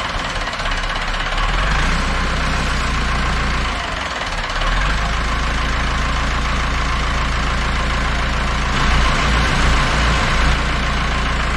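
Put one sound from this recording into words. A vintage diesel tractor idles.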